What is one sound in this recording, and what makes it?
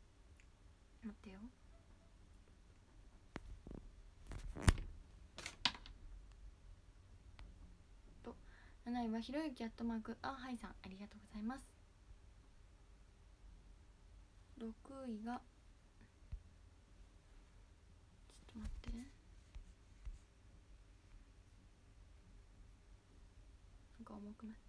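A young woman speaks softly and close to a phone microphone, in short bursts with pauses.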